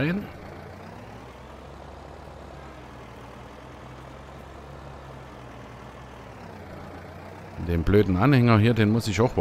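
A tractor engine rumbles steadily as it drives.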